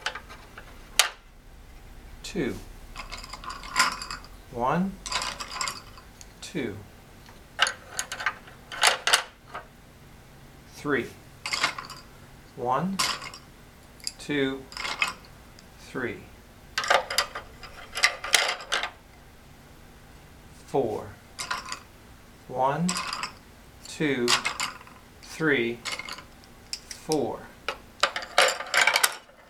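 Wooden sticks click and clatter into a wooden box.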